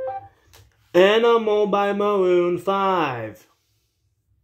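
A young man sings loudly close by.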